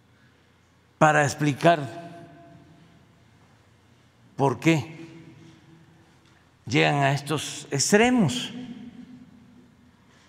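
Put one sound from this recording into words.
An elderly man speaks in short bursts through a microphone, echoing in a large hall.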